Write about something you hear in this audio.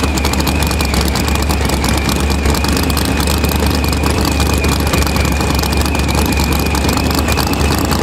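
A loud race car engine rumbles and crackles close by.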